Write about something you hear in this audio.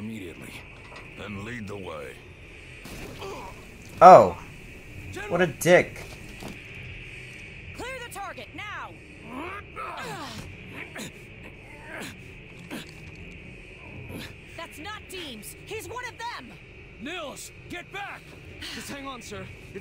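A man speaks sharply, close by.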